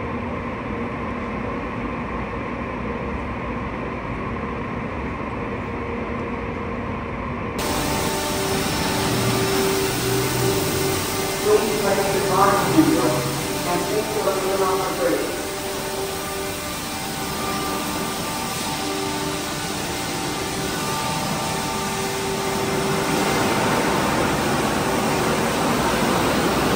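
Spinning brushes scrub a car.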